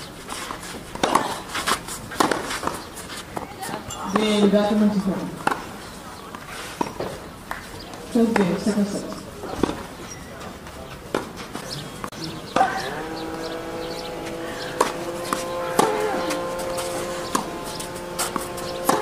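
A tennis ball is struck hard by rackets in a rally.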